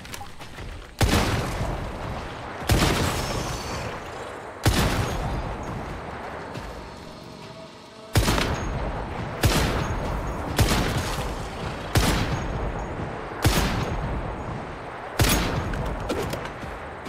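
Loud rifle shots ring out one at a time, each echoing away.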